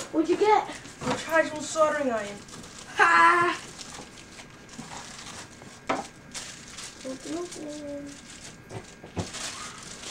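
Cardboard packaging rustles and scrapes as a box is opened.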